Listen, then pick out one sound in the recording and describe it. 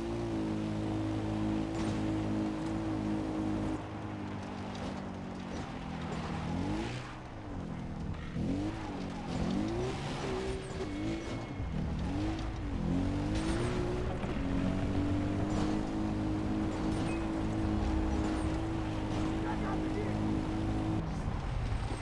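A quad bike engine drones and revs up and down as it drives.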